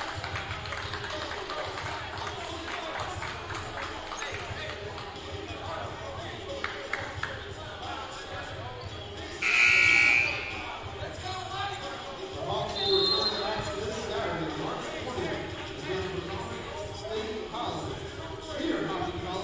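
A crowd murmurs and chatters in a large echoing gym.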